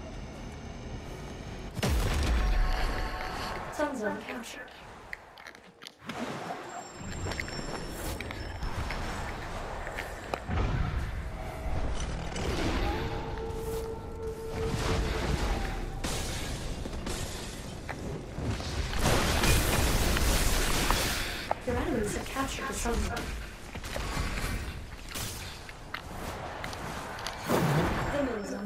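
Video game sound effects whoosh and clash during a fight.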